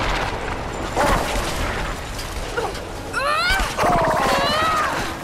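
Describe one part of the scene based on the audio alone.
A monster growls and screeches.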